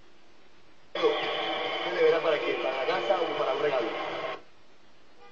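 A man speaks with animation through a television loudspeaker.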